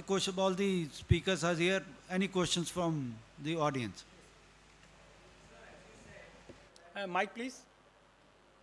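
A man speaks into a microphone over loudspeakers in a large hall.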